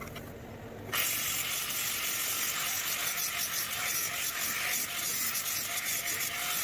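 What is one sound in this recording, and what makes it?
An angle grinder whirs loudly with a high, steady whine.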